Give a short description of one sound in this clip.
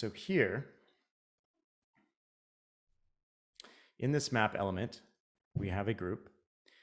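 A man talks calmly and close to a microphone, in short phrases.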